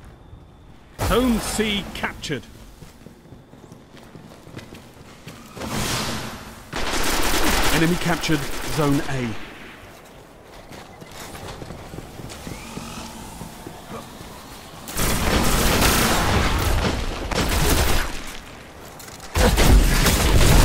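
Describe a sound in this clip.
Guns fire in loud, crackling bursts.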